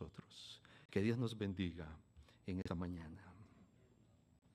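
An elderly man speaks forcefully through a microphone, then pauses.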